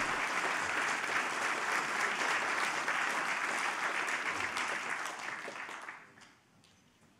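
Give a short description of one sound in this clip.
An audience applauds in a large hall, then fades.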